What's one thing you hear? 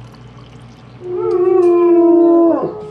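A dog howls loudly and long.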